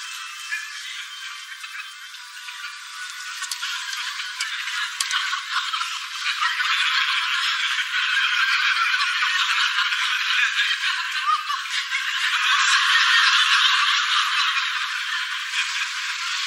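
A congregation of men and women murmurs and talks in an echoing church.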